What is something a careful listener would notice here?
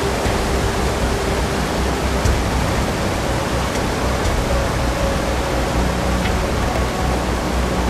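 Whitewater rapids rush and roar loudly.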